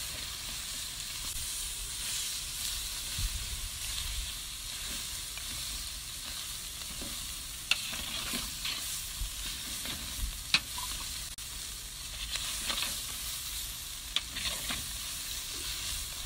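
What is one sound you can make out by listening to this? Meat sizzles and crackles in a hot pan.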